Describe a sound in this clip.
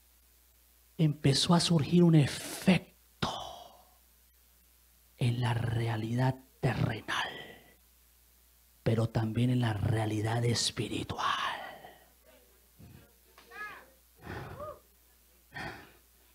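A man preaches with animation into a microphone, heard through loudspeakers in a hall.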